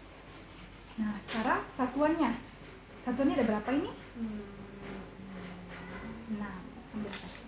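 A young woman speaks with animation close by.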